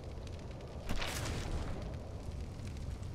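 A burst of flame roars up briefly.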